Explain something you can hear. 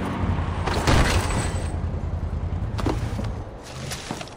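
A quad bike crashes onto rocks.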